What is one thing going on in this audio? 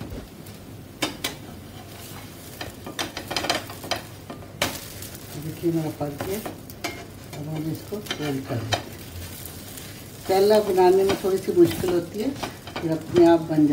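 A metal spatula scrapes and taps against a frying pan.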